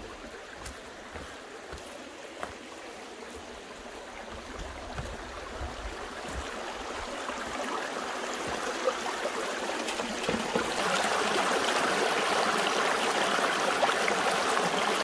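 A shallow stream trickles and babbles over stones, growing louder and rushing up close.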